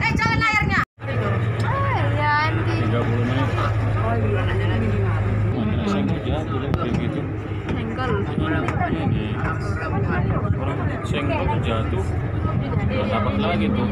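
A ship's engine hums steadily.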